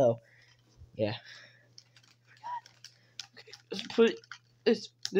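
Plastic toys rattle and clack as they are handled.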